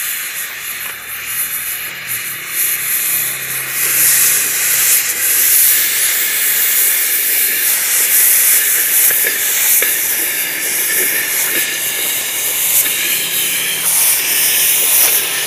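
A cutting torch hisses and roars steadily.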